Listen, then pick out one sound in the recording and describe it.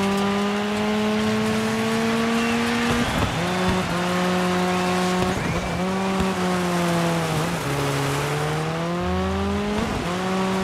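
Tyres slide and crunch over loose dirt.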